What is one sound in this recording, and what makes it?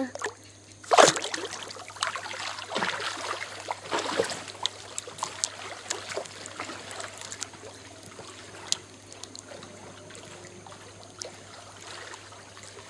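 Water splashes as a swimmer swims away.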